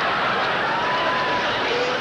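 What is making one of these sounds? A woman cries out in alarm.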